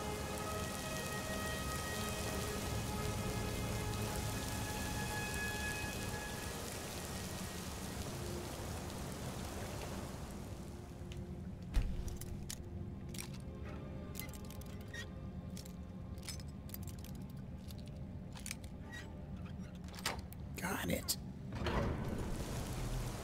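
A magical flame hums and crackles steadily.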